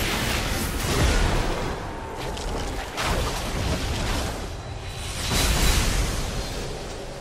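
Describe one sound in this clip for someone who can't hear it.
Blows and explosions thud heavily.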